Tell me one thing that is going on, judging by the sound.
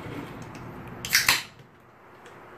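A can is opened with a sharp hiss.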